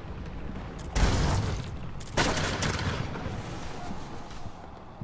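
A pistol fires loud shots.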